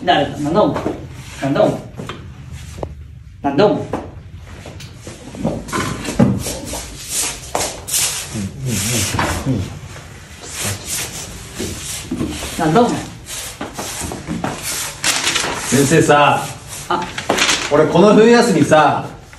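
Young men argue loudly in an echoing room.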